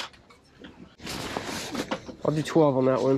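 Fabric rustles as a jacket is handled.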